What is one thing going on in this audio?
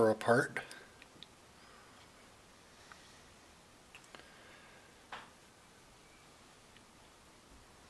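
Small metal parts click and tap together by hand.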